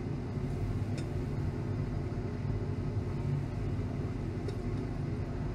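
Glass clinks lightly against glass.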